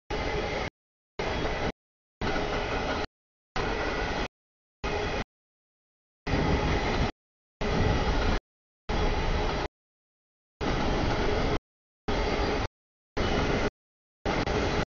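A freight train rumbles past at a crossing.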